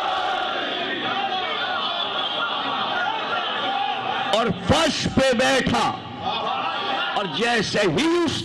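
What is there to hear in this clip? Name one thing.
A man recites loudly through a microphone and loudspeaker.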